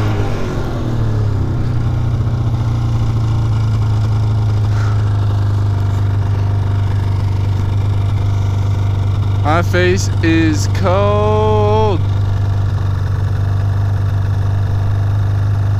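A snowmobile engine hums steadily up close.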